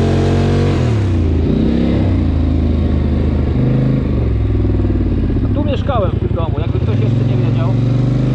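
A quad bike engine hums and revs up and down close by.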